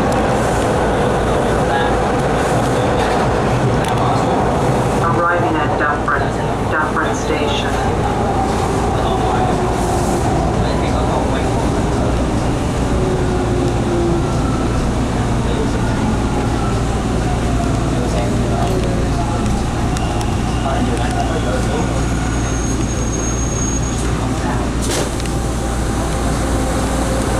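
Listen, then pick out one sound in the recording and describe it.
A subway train rumbles loudly along the tracks.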